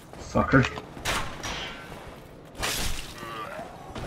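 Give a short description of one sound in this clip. A sword slashes and strikes a body with a heavy thud.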